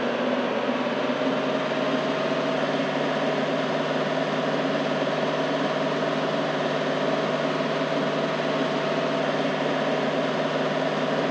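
A vehicle engine hums steadily as a truck drives over rough ground.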